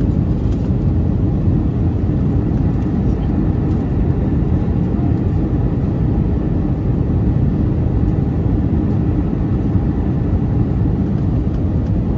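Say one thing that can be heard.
A jet engine roars steadily, heard from inside an airliner cabin.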